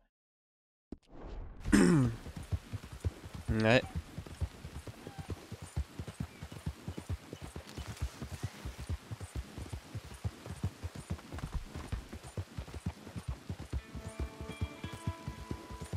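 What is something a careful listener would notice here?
Horse hooves gallop steadily over soft ground.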